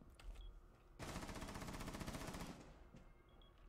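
A rifle fires a rapid burst of shots nearby.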